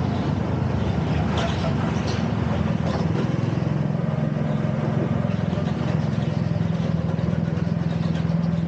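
A go-kart engine buzzes loudly up close, rising and falling as it speeds around bends.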